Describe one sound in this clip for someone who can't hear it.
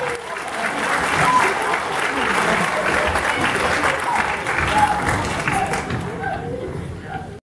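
A group of young men and women chatter and call out in lively voices.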